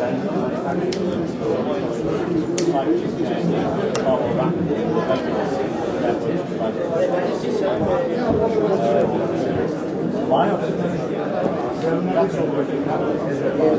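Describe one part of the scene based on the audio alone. Buttons on a phone click softly under a thumb.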